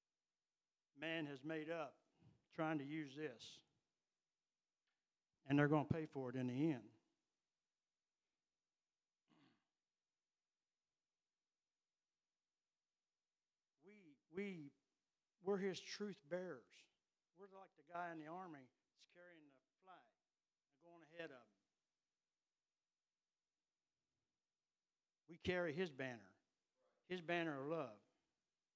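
An elderly man preaches with animation into a microphone, heard through loudspeakers, with long pauses.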